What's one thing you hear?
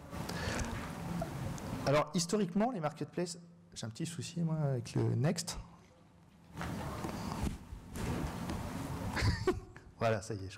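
A man speaks through a microphone in a room with a slight echo.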